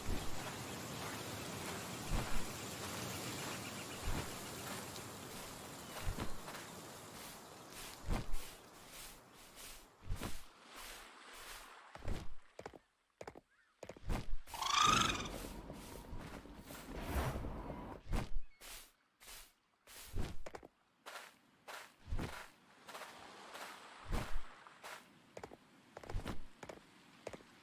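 A large mount's footfalls thud on the ground.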